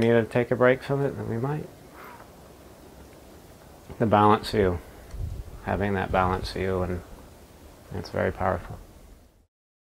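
A man speaks calmly and thoughtfully into a microphone, close by.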